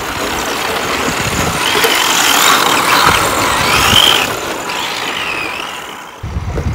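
Small electric motors whine, rising and falling in pitch as toy cars race.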